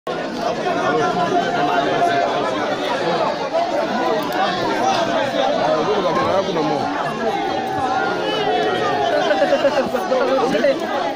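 A dense crowd of men and women sings and chants loudly close by.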